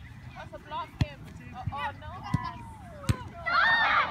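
A soccer ball is kicked with a dull thump.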